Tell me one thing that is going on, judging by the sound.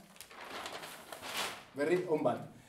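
Large sheets of paper rustle as they are flipped over.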